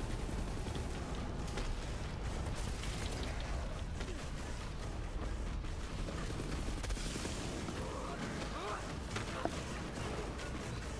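Guns fire in rapid bursts.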